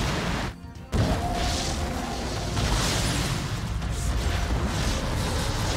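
Energy blasts zap and crackle.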